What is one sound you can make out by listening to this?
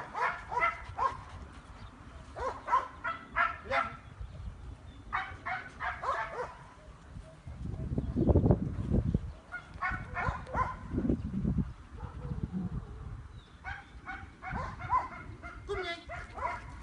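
A man gives commands to a dog in a firm voice.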